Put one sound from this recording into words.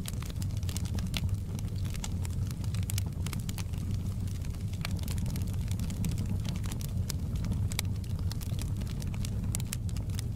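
Flames roar with a low, steady rumble.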